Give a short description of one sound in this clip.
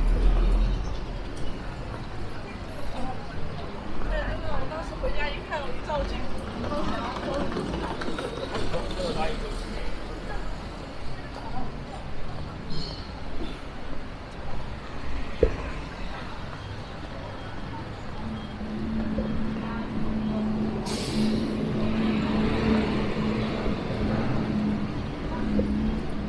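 Footsteps tap on pavement as a person walks.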